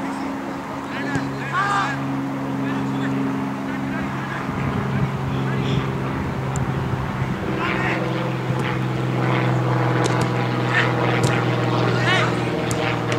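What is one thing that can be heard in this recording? Players shout to each other in the distance outdoors.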